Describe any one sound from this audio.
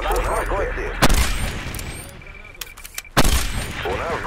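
A rifle fires a sharp, loud shot.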